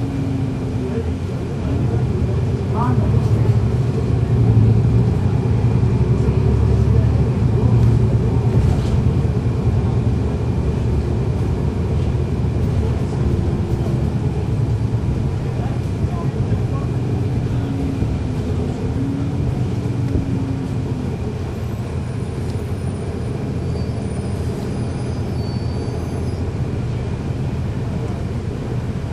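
A diesel transit bus engine drones, heard from on board.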